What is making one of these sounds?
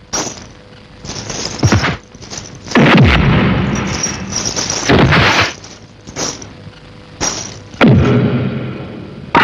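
Punches and blows land with loud thuds.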